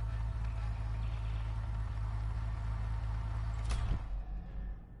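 A car engine rumbles deeply, then cuts off.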